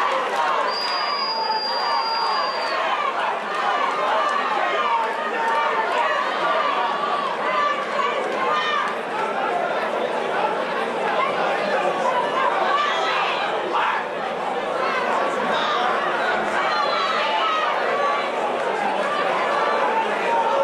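A crowd shouts and cheers in a large arena.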